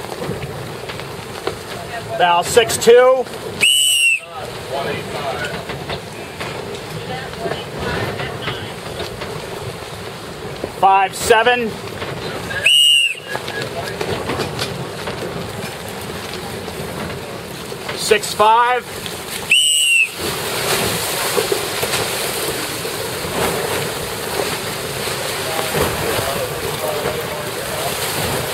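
Wind blusters loudly outdoors over open water.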